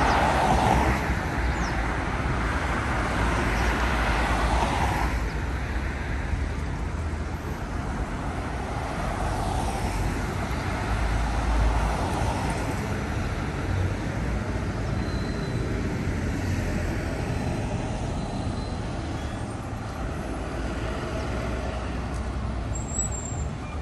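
Buses rumble past with engines droning.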